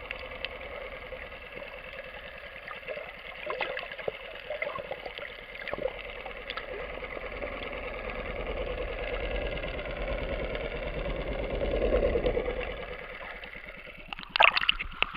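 Water rumbles and crackles, heard from underwater.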